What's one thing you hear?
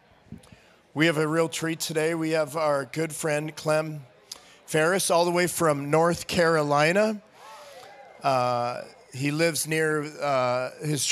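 A man speaks loudly through a microphone over loudspeakers in a large echoing hall.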